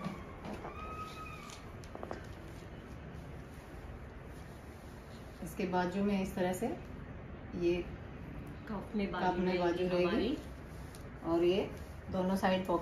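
Fabric rustles as a dress is handled.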